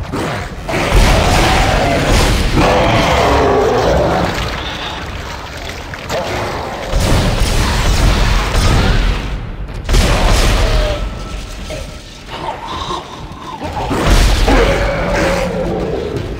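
A gun fires in loud, sharp bursts.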